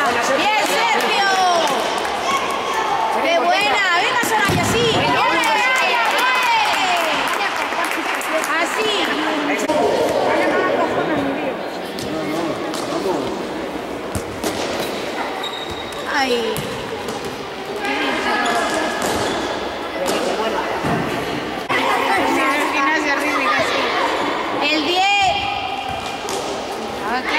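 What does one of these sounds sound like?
Children and adults shout and cheer in a large echoing hall.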